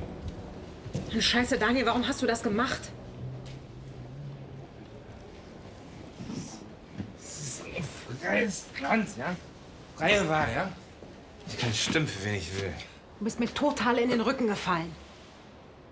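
A woman speaks calmly and quietly nearby.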